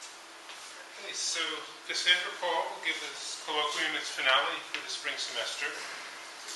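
A middle-aged man speaks calmly to a room, heard a little way off in an echoing hall.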